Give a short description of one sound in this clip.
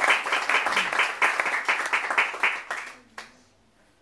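A piano plays fast, loud notes close by, then stops.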